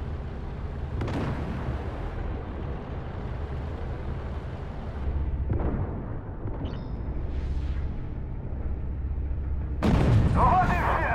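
A tank cannon fires with loud booms.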